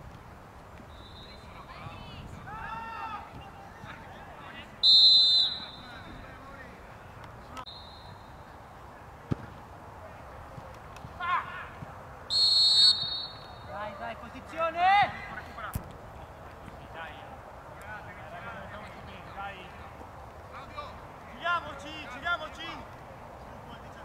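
Men shout to each other across an open field.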